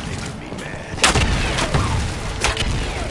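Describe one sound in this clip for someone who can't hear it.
A loud game explosion booms.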